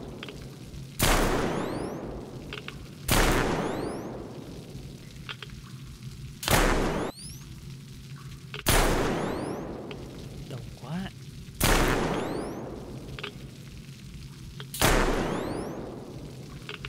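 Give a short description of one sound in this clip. Rifle shots ring out loudly, each followed by a long echoing boom.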